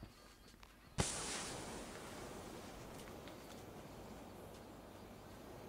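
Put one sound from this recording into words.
A smoke grenade bursts and hisses loudly.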